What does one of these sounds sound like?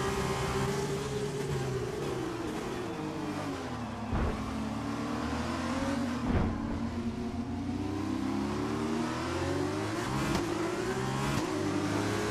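A racing car engine drops in pitch as the car brakes hard, then revs up again.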